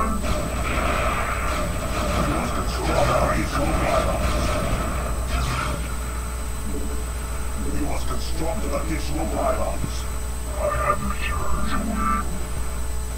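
Electronic game sound effects chirp and whir.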